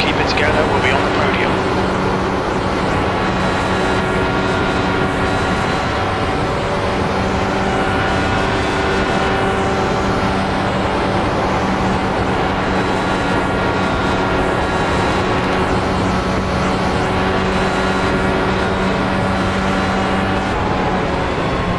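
An open-wheel race car engine drones at full throttle at a steady pitch.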